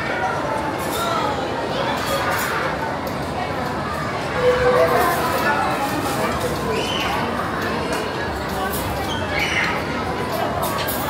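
A crowd of people chatters in a busy, echoing room.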